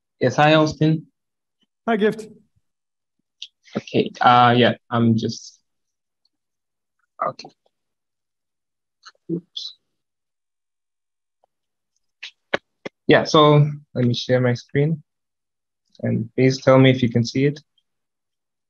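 A man speaks calmly through a microphone, pausing between phrases.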